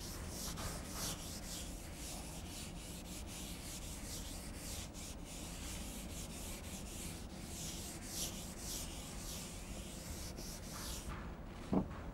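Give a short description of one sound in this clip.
A duster rubs across a chalkboard in quick strokes.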